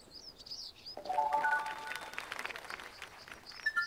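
A bright game chime rings out with a short rising jingle.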